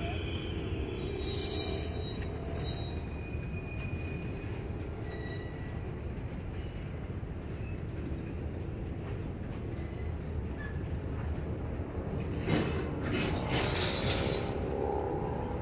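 Train wheels clank and screech on the rails.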